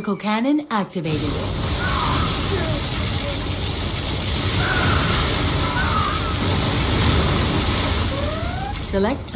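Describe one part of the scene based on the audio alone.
A powerful beam weapon hums and roars steadily.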